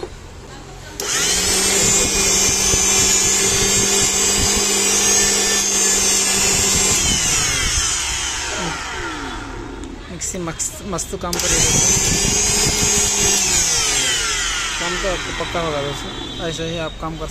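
A blender motor whirs loudly at high speed, then slowly winds down.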